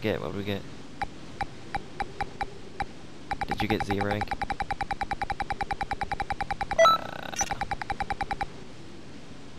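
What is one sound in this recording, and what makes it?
Short electronic beeps tick quickly as a score counts up.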